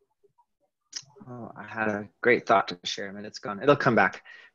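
A second man speaks calmly over an online call.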